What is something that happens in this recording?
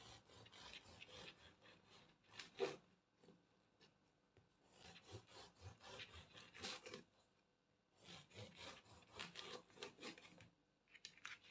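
A serrated knife saws through a crusty loaf of bread in bursts.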